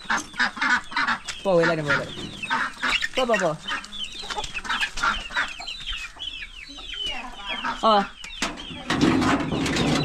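Chickens cluck and chirp close by.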